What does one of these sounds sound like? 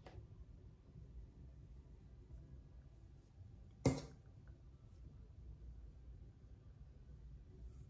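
A comb scrapes softly through hair.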